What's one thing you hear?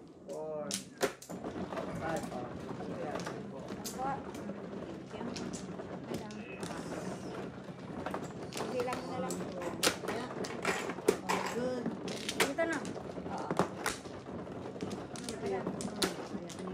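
Plastic tiles clack and clatter on a table.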